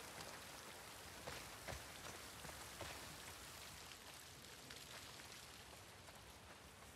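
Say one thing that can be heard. Footsteps crunch through grass and debris.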